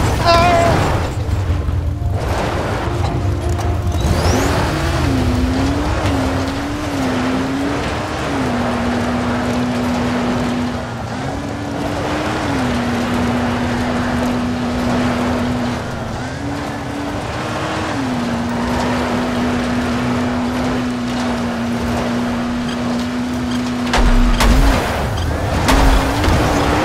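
A buggy engine drones steadily and revs up and down.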